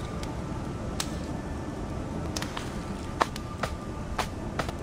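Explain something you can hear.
Footsteps tap on a wooden floor.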